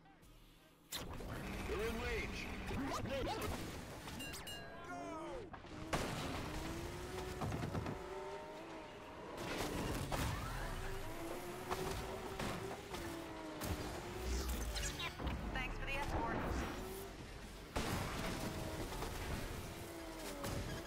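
Car engines roar and whine as vehicles race over rough ground.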